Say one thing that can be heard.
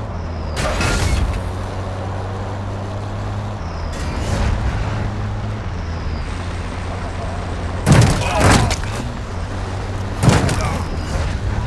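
Gunshots crack loudly nearby.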